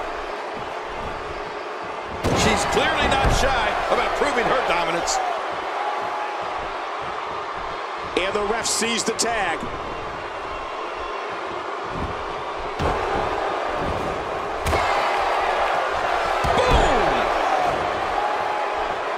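A large crowd cheers and murmurs steadily.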